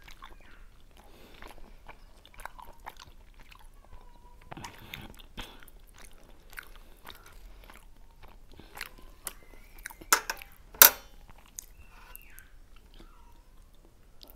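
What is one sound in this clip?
Two women chew and smack their lips close to a microphone.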